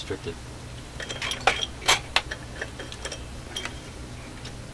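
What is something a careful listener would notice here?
A hand knocks and clicks against metal equipment.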